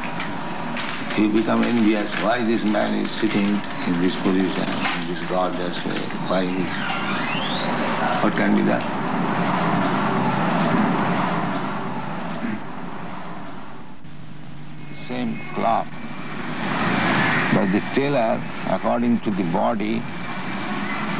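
An elderly man speaks calmly through an old, hissy recording.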